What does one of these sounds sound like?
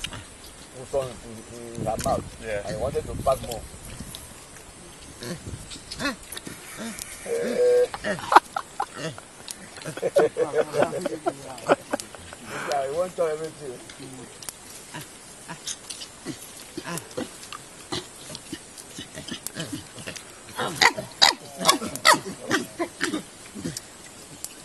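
Chimpanzees crunch and chew fruit close by.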